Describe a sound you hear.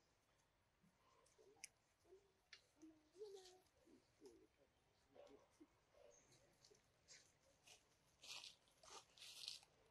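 A monkey chews food with soft, wet smacks.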